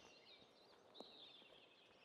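A golf club taps a ball with a short click.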